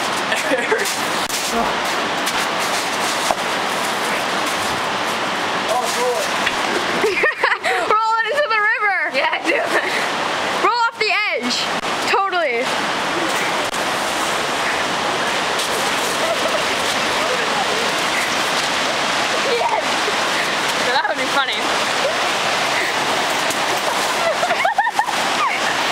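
A river rushes loudly nearby.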